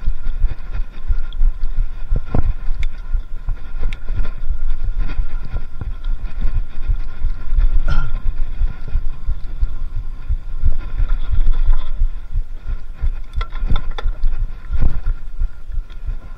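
Wind buffets loudly in the open air.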